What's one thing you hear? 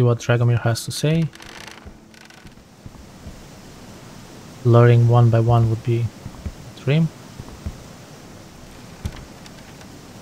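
Footsteps thump on a wooden bridge.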